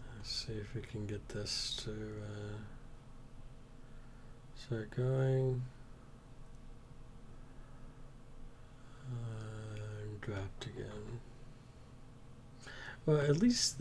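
A middle-aged man speaks calmly and hesitantly over an online call.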